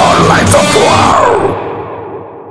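A man screams a vocal loudly into a microphone.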